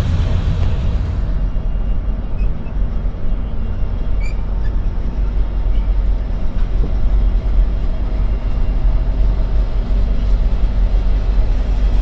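A diesel locomotive rumbles and drones close by.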